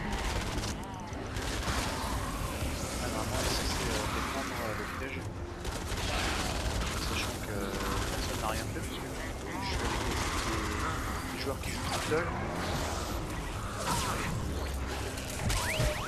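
Melee blows thud and clang against monsters in a game.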